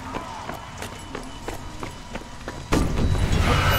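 Boots thud quickly on a hard street as a soldier runs.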